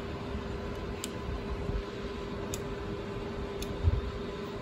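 A small switch clicks a few times.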